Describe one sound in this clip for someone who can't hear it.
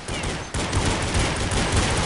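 A pistol fires sharp shots close by.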